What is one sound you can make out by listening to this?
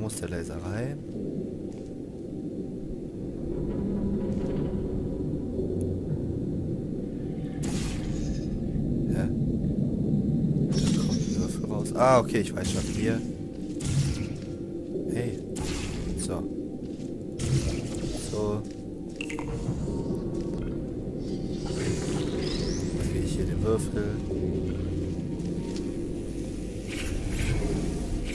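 A laser beam hums with a low, steady electric drone.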